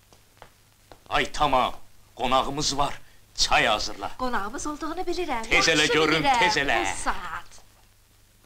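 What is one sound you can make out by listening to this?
A man speaks loudly and excitedly.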